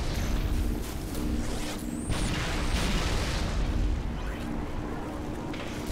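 Energy weapons crackle and buzz.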